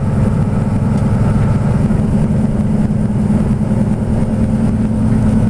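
Other cars rush past close by.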